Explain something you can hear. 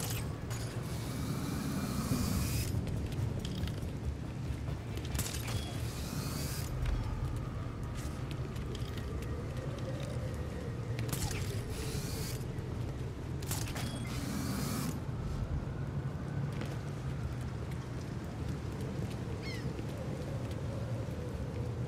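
Quick footsteps patter on a hard rooftop.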